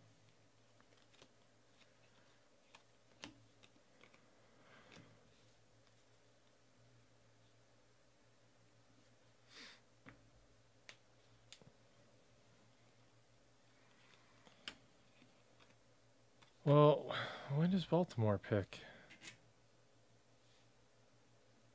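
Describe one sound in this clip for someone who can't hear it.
Trading cards rustle and flick softly as hands sort through them.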